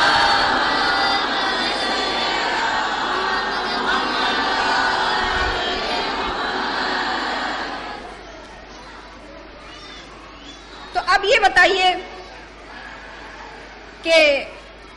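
A young woman speaks with feeling into a microphone, heard through a loudspeaker.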